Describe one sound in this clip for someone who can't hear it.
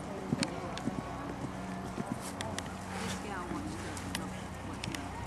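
A horse's hooves thud on sand at a canter.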